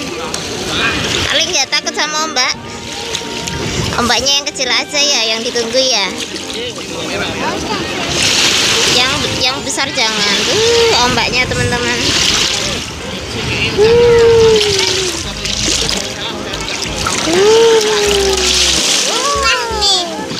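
Children shout and squeal while playing in the water nearby.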